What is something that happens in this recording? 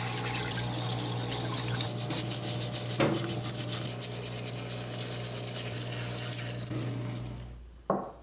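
A water jet sprays and hisses against metal.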